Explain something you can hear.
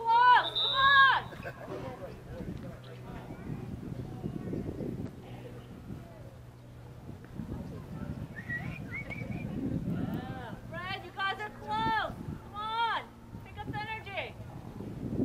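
Young girls shout to each other outdoors across an open field.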